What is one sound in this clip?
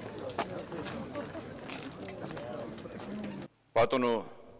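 People chatter outdoors in a crowd.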